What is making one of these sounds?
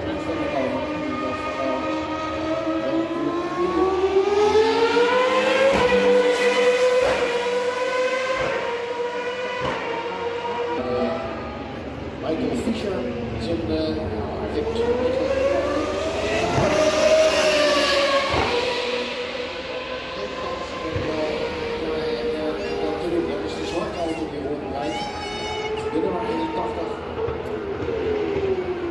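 A racing car engine screams loudly, revving up and down as it speeds past.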